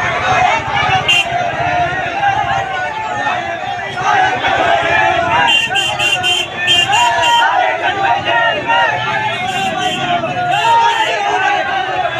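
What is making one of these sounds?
A crowd of men shouts and chants loudly outdoors.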